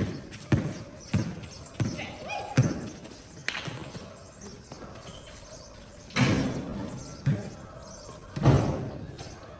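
A basketball bounces on hard ground.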